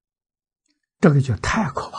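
An elderly man speaks calmly into a clip-on microphone.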